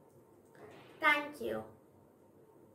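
A young girl says a few words close by.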